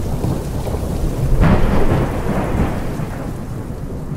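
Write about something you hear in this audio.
Thunder cracks loudly and rumbles.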